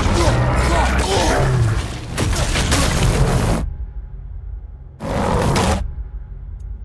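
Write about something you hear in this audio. Rubble and debris roar and crash in a swirling blast.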